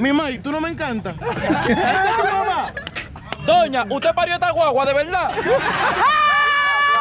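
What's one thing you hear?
A crowd of young men and women shouts and cheers excitedly outdoors.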